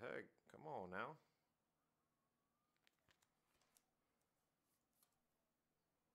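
Trading cards softly click and rustle as hands handle them.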